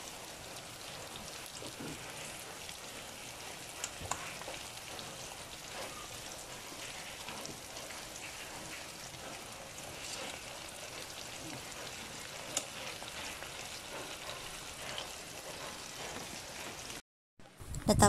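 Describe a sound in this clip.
Oil sizzles and crackles steadily as chicken fries.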